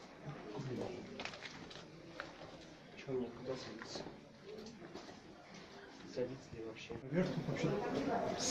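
A middle-aged man talks close by.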